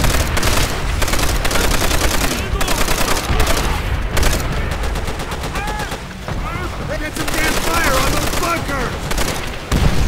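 A belt-fed machine gun fires rapid bursts.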